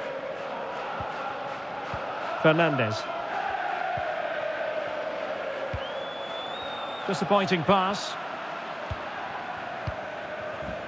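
A football is kicked with short dull thuds, again and again.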